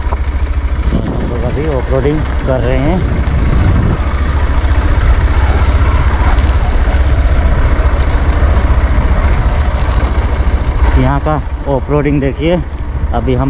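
A motorcycle engine runs as the bike rides over a dirt track.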